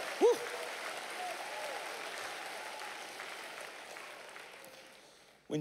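A large crowd cheers and applauds in a big echoing hall, slowly fading.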